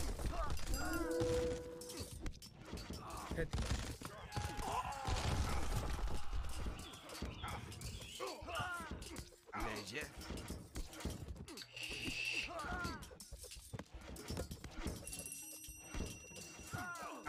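Swords and weapons clash in a battle.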